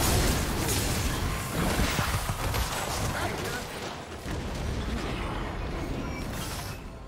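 Spell effects whoosh and burst during a fight.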